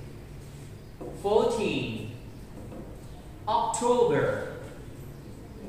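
A young man speaks clearly and slowly, as if teaching.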